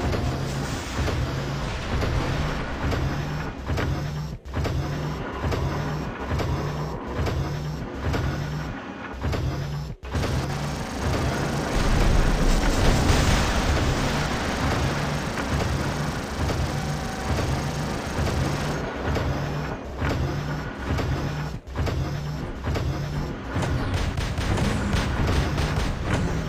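Heavy metal footsteps stomp in a steady rhythm.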